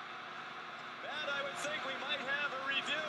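Young men shout and cheer excitedly up close.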